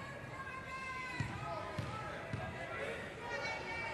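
A basketball bounces on a wooden court floor.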